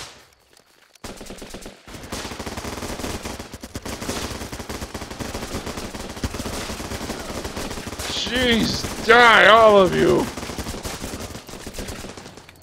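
Rapid gunfire crackles in short bursts.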